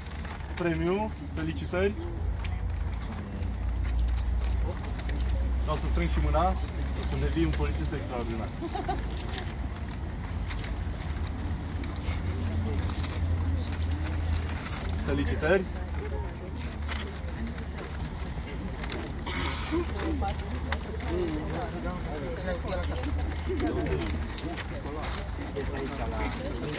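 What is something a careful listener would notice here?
Men and women talk nearby in a calm crowd, outdoors.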